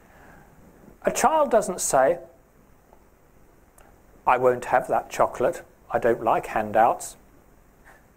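A man speaks calmly, pausing between phrases, in a small echoing room.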